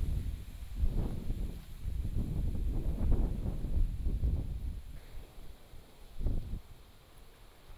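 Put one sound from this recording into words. An erupting volcano rumbles deeply in the distance.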